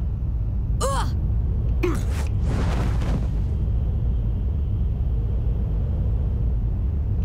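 Wind rushes steadily past a falling skydiver.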